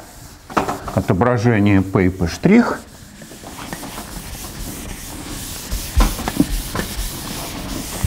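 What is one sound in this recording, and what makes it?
A sponge wipes across a blackboard.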